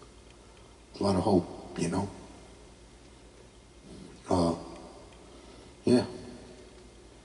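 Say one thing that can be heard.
A man sings in short phrases into a microphone, heard through a loudspeaker with some echo.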